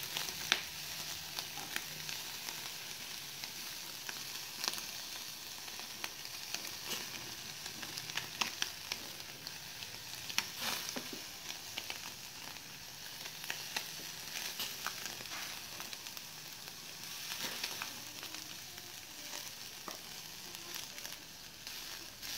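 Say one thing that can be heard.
Wooden skewers click against a metal grill.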